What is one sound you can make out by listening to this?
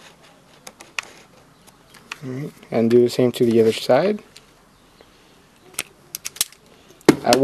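A hand tool clicks sharply a few times.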